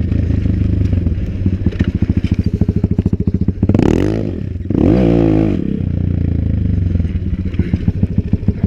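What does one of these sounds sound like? A pit bike engine chugs and pops at low revs.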